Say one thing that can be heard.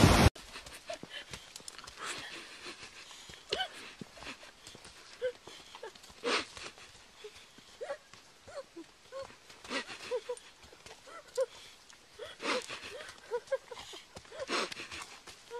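Horse hooves thud softly on dirt.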